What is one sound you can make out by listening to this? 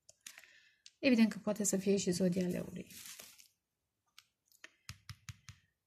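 A playing card is set down softly on a cloth-covered table.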